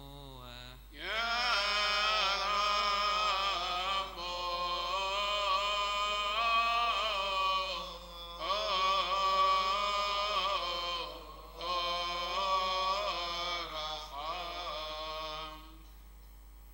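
A group of men and boys sings a loud chant together.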